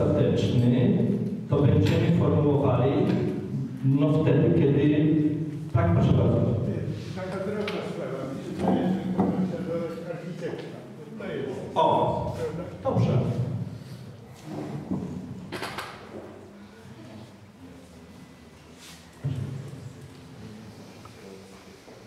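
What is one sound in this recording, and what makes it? A middle-aged man speaks calmly into a microphone, heard through a loudspeaker in an echoing room.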